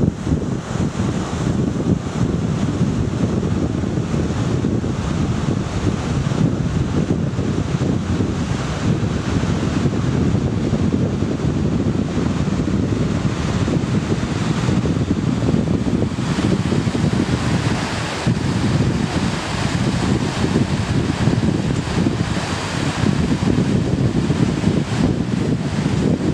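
A mountain stream rushes over rocks.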